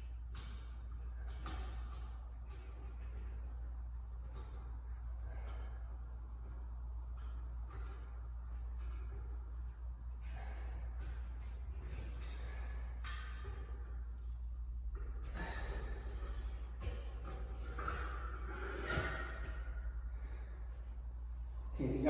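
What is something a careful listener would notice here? A light fitting scrapes and clicks against a ceiling.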